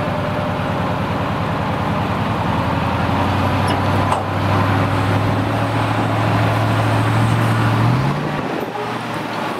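A truck's diesel engine rumbles steadily nearby.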